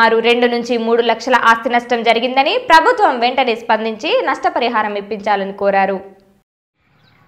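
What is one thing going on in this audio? A young woman speaks steadily into a microphone.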